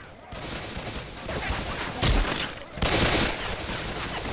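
A pistol fires in loud sharp shots.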